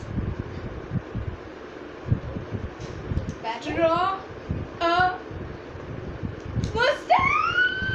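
A second young girl talks and laughs, close by.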